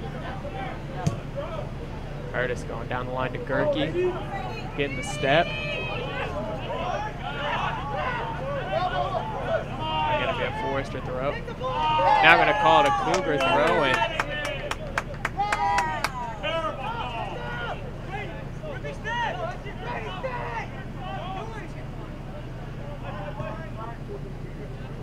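Players shout and call to each other across an open field outdoors.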